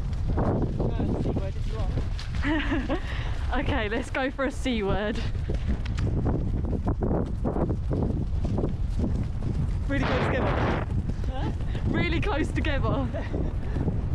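A horse's hooves thud steadily on soft grass.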